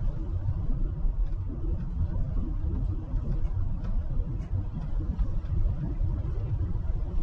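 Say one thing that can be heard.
A car drives along a road with a steady low rumble of tyres and engine.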